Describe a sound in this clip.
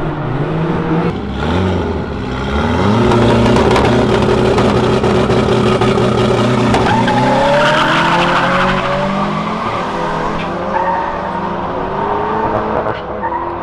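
Car engines rev loudly and race off at high speed.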